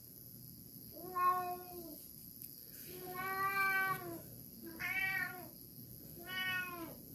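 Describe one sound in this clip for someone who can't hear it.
A woman hums long, drawn-out notes close by.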